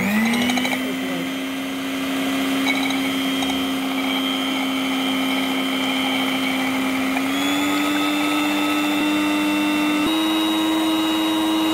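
An electric mixer whirs steadily, rising in pitch as it speeds up.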